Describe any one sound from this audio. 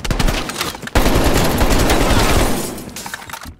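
A rifle fires a rapid burst of loud shots close by.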